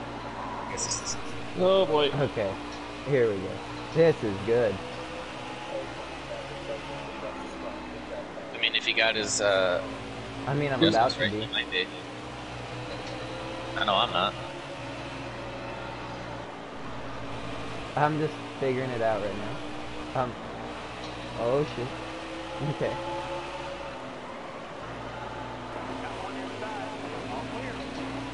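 Race car engines roar steadily at high revs.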